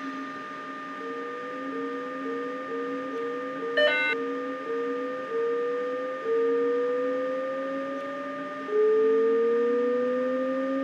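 A train's electric motors whine, rising in pitch again and again as it speeds up.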